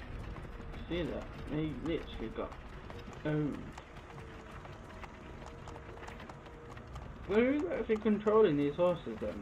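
Wooden wagon wheels rumble over a dirt road.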